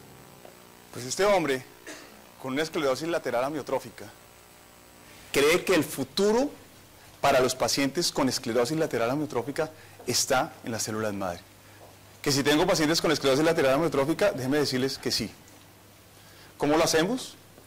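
A middle-aged man speaks calmly to an audience through a microphone.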